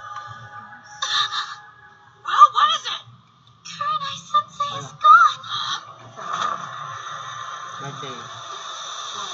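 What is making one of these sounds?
A young woman talks over an online call.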